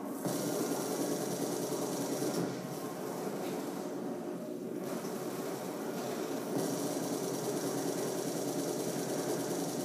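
Rapid gunfire crackles from a television speaker.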